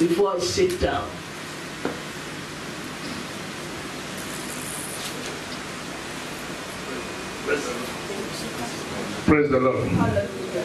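A woman speaks into a microphone over loudspeakers in a large room.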